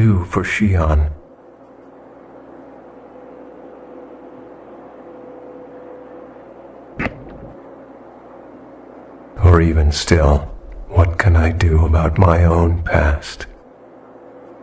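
A man speaks calmly in a low voice, close by.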